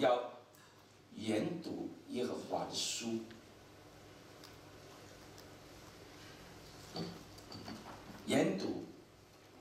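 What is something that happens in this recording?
A man speaks through a microphone in a large echoing hall, with long pauses.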